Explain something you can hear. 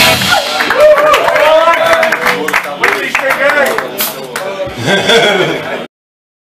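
Drums and cymbals crash in a lively beat.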